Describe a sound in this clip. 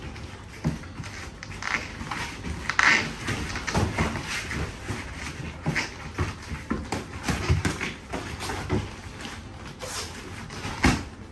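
Gloved punches thud against pads and gloves in quick bursts.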